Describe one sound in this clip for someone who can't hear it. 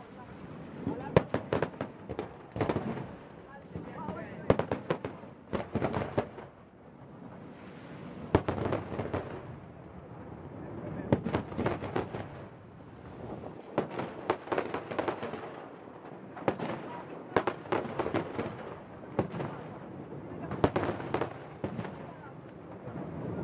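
Fireworks crackle and fizz in rapid pops.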